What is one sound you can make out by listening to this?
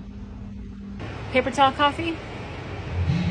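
A woman speaks casually, close by, outdoors.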